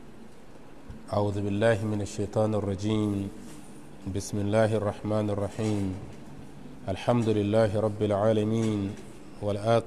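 A man speaks steadily into a close microphone, as if reading aloud.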